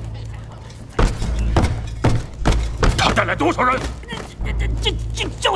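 Men scuffle and grunt in a struggle.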